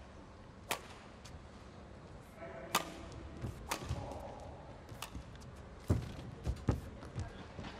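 Badminton rackets strike a shuttlecock back and forth in a large indoor hall.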